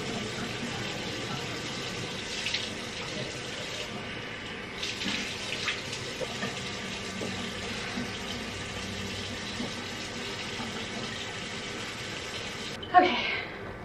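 Water runs steadily from a tap.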